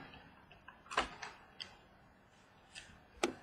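A hard plastic card case clicks and taps as it is handled.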